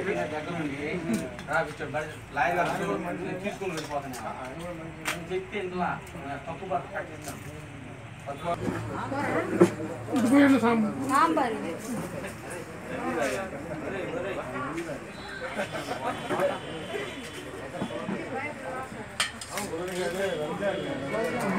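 Metal serving dishes clink now and then.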